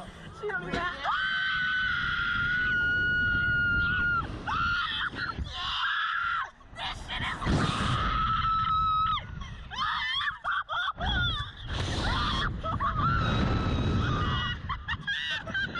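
A young woman screams loudly and long.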